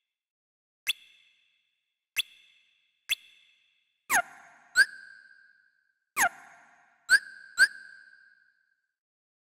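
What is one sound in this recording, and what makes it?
Short electronic menu blips chime several times.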